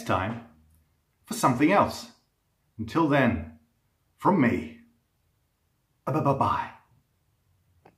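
A middle-aged man speaks close to the microphone in short, expressive bursts.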